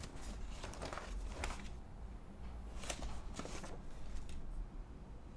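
Papers and cards rustle as a hand sorts through a box.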